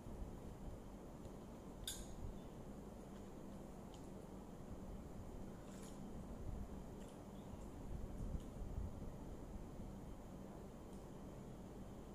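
A spoon clinks against a glass while stirring.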